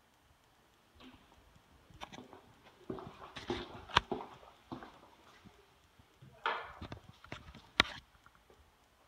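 Footsteps tap on a hard floor in an empty, echoing room.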